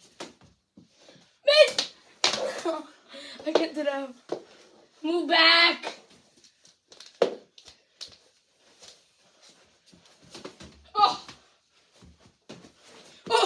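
Hockey sticks clack and slap a ball on a hard floor.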